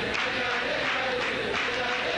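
Men clap their hands in rhythm.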